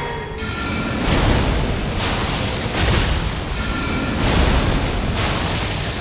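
Heavy magical blasts burst in loud roaring waves.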